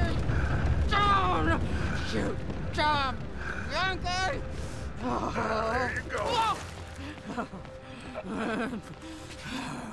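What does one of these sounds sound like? A man shouts angrily nearby.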